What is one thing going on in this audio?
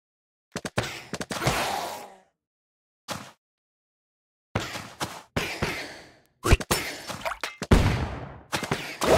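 Electronic game sound effects of magical blasts and hits burst out in quick, sharp bursts.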